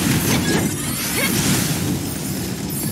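A fiery blast booms and roars.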